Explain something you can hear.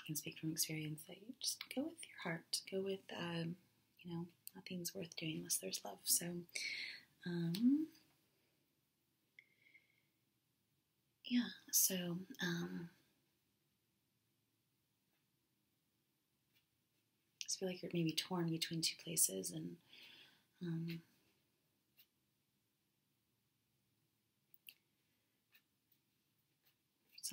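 Playing cards rustle and flick as they are shuffled.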